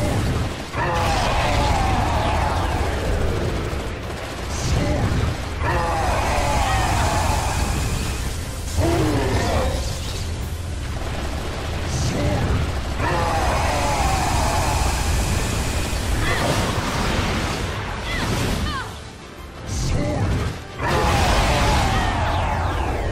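Loud blasts and explosions boom again and again.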